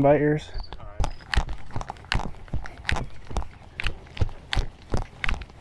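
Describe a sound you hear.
Footsteps tap steadily on a paved path.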